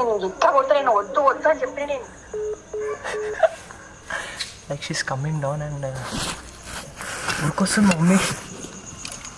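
A young man talks with animation and laughs close up.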